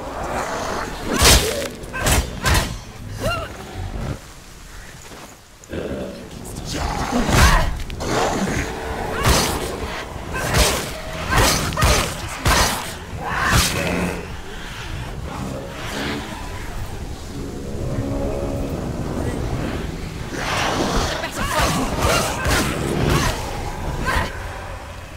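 Swords clash and strike in a fast fight.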